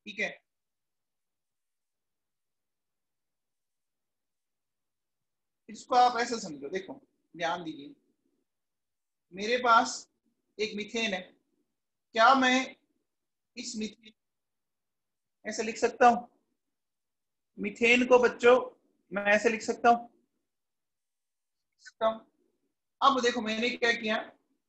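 A man speaks calmly in short phrases, heard closely through a microphone.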